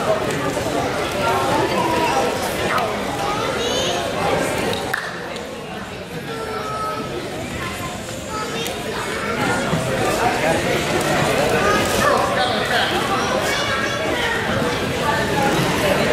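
A crowd of spectators murmurs and calls out in a large echoing gym.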